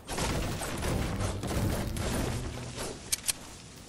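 A pickaxe thuds repeatedly against a tree.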